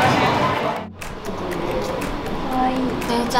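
Young women talk nearby.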